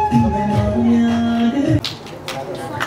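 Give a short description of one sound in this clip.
A young woman sings into a microphone over a loudspeaker.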